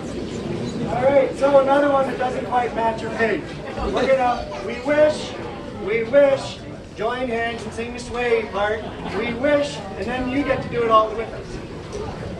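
A man speaks loudly and with animation to a crowd.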